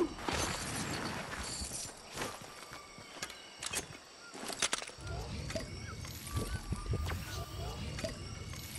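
Footsteps crunch through grass and leaves.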